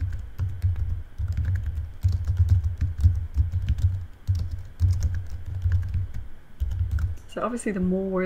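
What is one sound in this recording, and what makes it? Keys on a keyboard tap in quick bursts.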